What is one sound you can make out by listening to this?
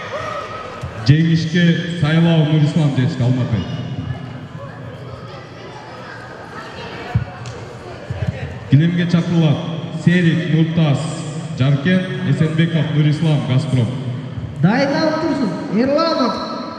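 A man shouts loudly in an echoing hall.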